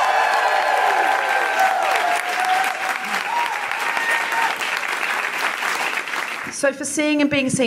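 Several women chatter and laugh together in a lively crowd.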